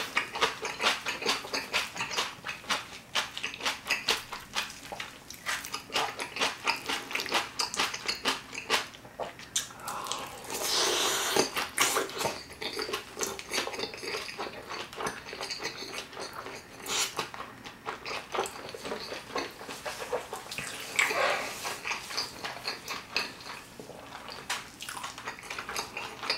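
A man chews and crunches food wetly, close to a microphone.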